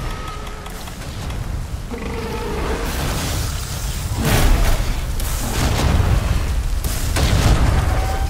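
A large winged monster flaps its wings.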